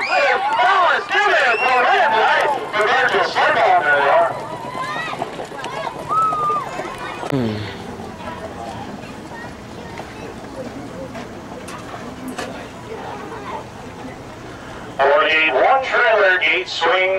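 Horses trot along a dirt track with a dull patter of hooves.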